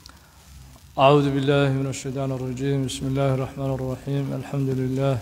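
A man recites in a melodic chant, close to a microphone.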